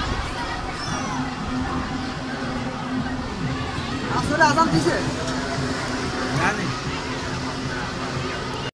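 A crowd of people chatters nearby, with a few voices calling out.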